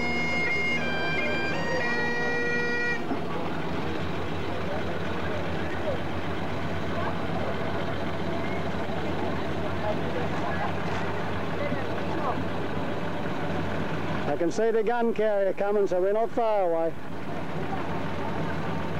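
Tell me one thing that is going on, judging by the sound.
Old car engines rumble as cars roll slowly past.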